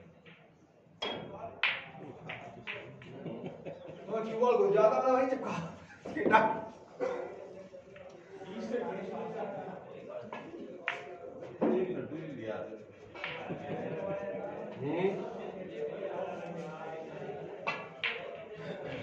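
Snooker balls click sharply as a cue strikes.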